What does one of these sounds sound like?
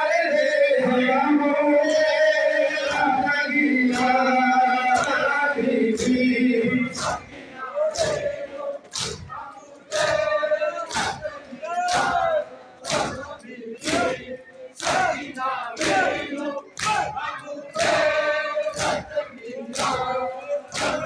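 A large crowd of men chants loudly in unison in an echoing hall.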